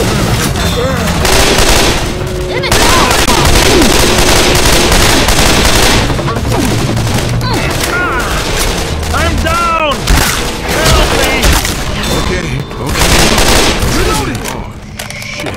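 Automatic gunfire rattles in loud rapid bursts.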